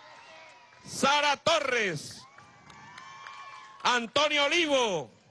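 An older man speaks loudly and forcefully into a microphone over loudspeakers, outdoors.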